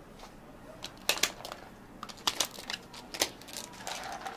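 Plastic lids snap onto cups.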